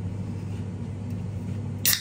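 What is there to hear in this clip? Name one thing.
A drink can is cracked open with a sharp pop and hiss.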